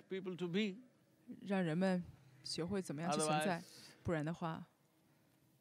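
An elderly man speaks calmly and expressively into a close microphone.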